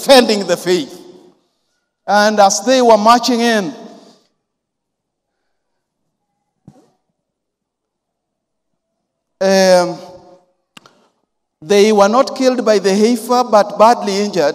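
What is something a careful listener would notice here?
A man preaches with animation into a microphone, with pauses between phrases, in a reverberant hall.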